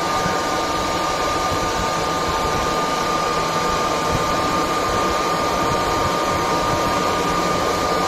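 An electric motor hums and whines steadily as it spins.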